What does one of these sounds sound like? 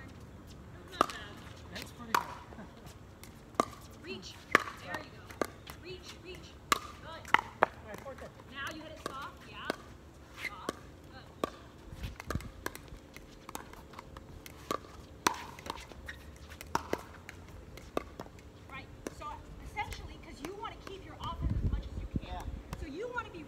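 Paddles knock a plastic ball back and forth with sharp pops outdoors.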